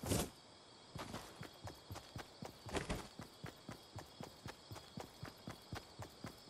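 Footsteps run quickly and steadily over grass.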